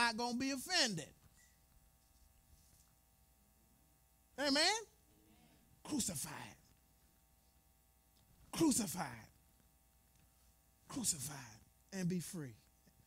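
A man preaches with animation in short bursts, heard through a microphone in a large echoing hall.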